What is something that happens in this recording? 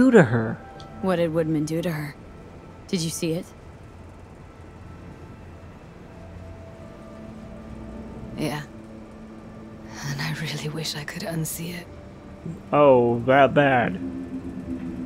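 A young woman speaks quietly and sadly, close by.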